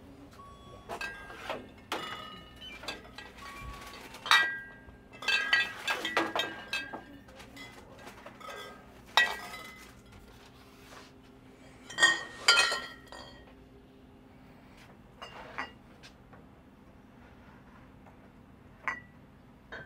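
Glass bottles clink against each other.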